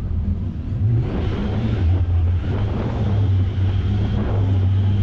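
Tyres crunch and rumble over a dirt track.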